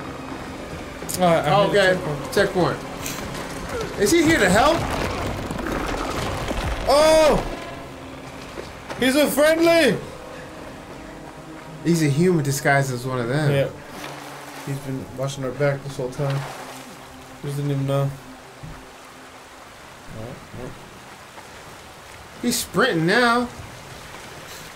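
Another young man talks and laughs close to a microphone.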